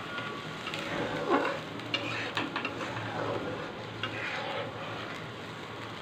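A spatula scrapes and stirs inside a metal wok.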